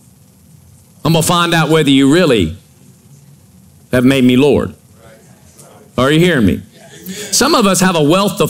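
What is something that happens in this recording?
A middle-aged man speaks into a microphone in short bursts, with pauses between.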